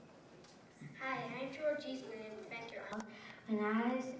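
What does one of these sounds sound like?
A young girl recites into a microphone.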